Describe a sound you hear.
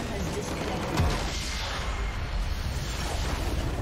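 A deep explosion booms in a video game.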